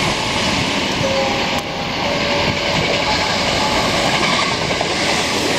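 Train brakes squeal faintly as a train pulls in.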